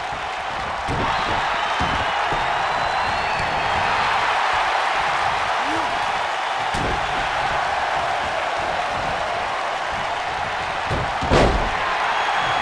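Heavy thuds of bodies hitting a wrestling mat ring out now and then.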